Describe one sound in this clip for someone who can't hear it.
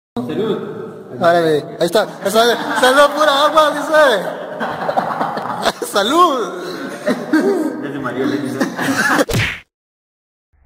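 Young men laugh loudly and shriek close by.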